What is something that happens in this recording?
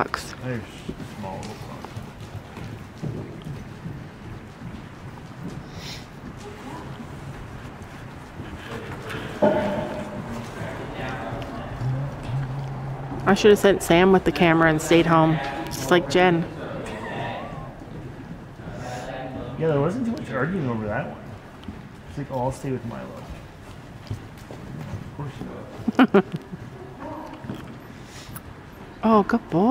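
Horse hooves thud softly on soft ground at a trot.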